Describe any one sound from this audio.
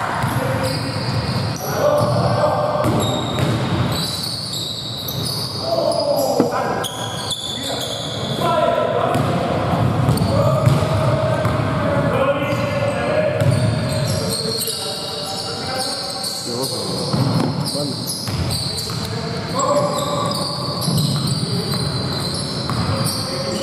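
Young men shout and call out across the court.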